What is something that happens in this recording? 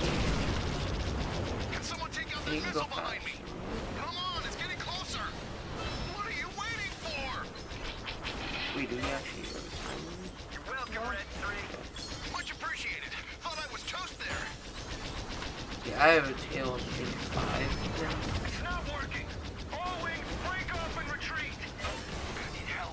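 Video game sound effects blast and clatter.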